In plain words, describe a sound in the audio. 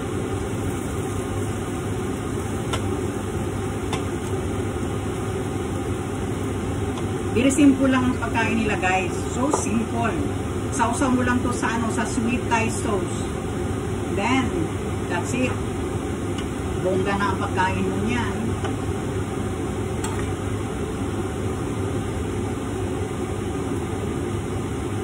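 Food sizzles steadily in frying pans.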